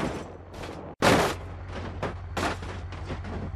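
A car crashes hard into trees with loud metallic bangs.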